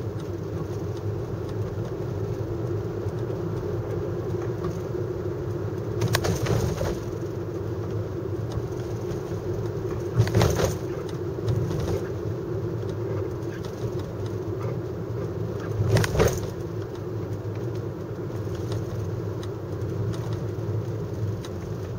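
A car engine hums, heard from inside the car.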